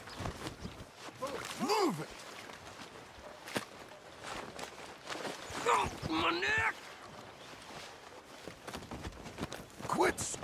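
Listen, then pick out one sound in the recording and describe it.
Footsteps scuff on a dirt path.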